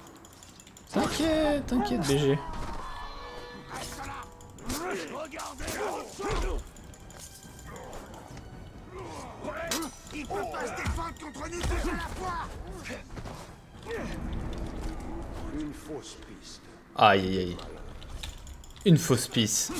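Swords clash and bodies thud in a fight.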